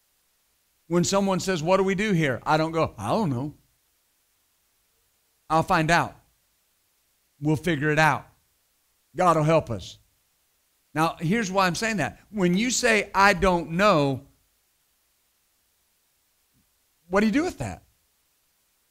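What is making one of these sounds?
A middle-aged man speaks with animation into a microphone, in short bursts with pauses.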